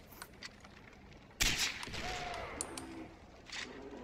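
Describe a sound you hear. A rifle fires a single loud shot close by.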